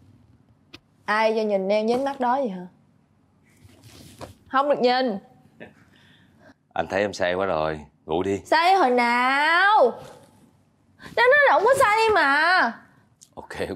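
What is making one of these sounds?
A young woman sobs and wails loudly, close by.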